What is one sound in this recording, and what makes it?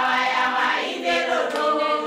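A group of women sings together outdoors.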